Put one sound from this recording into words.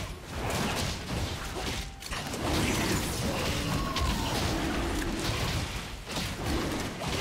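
Magic spells whoosh and crackle.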